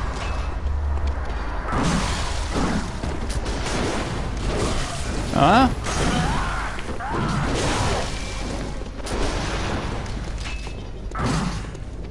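Weapons clash and slash in a fight.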